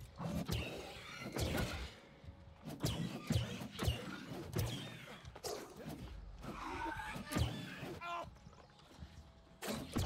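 Sharp hits strike during combat.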